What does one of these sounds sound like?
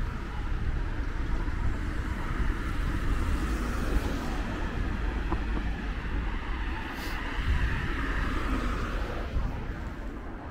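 Cars pass by on a road.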